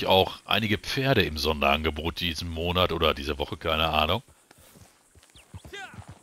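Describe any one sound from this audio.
A horse's hooves thud on dry ground at a trot.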